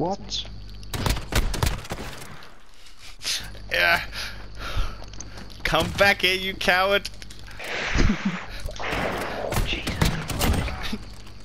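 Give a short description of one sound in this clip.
A shotgun fires loud, sharp blasts.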